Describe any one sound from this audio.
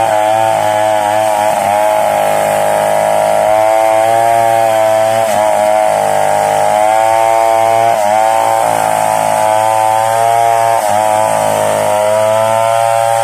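A chainsaw engine runs loudly, its pitch rising and falling as it cuts into wood.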